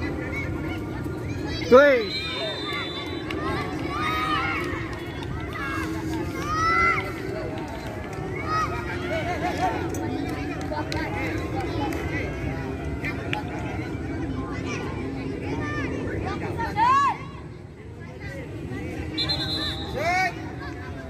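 Boys and young men shout and call out across an open field.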